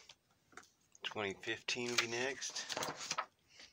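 A plastic binder page rustles as it is turned.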